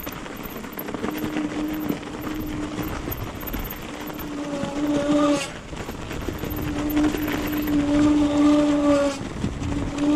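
An electric bike motor whines, rising and falling.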